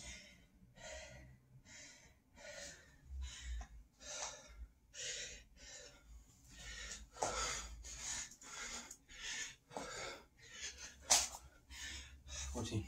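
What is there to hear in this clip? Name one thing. A man breathes hard and fast in quick rhythmic puffs.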